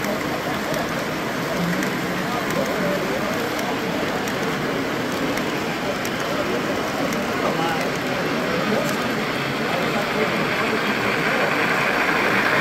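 Men chat with one another in the background.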